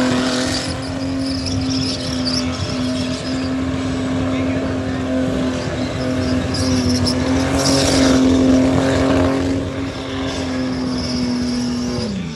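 Car tyres screech as they spin on the track.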